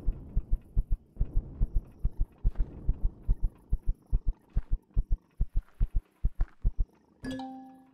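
Footsteps crunch steadily over the ground.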